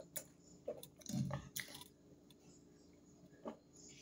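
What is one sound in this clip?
A middle-aged woman gulps a drink.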